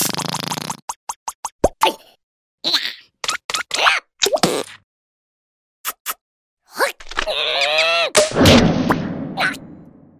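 A small creature grunts and squeals in a high, strained voice.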